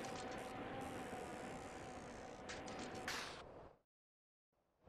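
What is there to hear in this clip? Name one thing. A bicycle is pedaled along a street.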